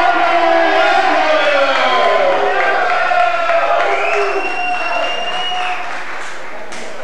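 A man shouts loudly at the start.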